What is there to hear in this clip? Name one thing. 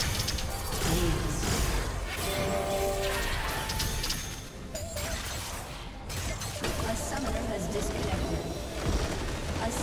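Game combat sound effects clash and crackle.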